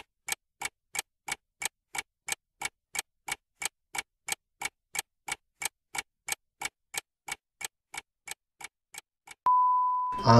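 A countdown timer ticks steadily.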